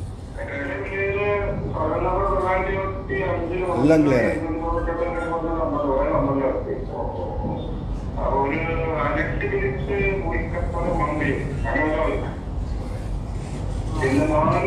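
A middle-aged man speaks with animation into microphones in a slightly echoing room.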